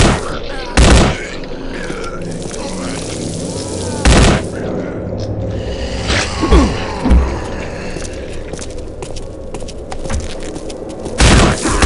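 A rifle fires short bursts of shots.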